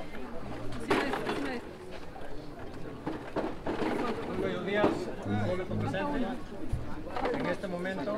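A young man speaks with feeling into a microphone, heard through a loudspeaker outdoors.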